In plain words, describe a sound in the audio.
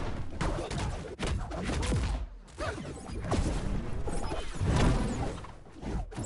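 Quick whooshing effects swoop up and down.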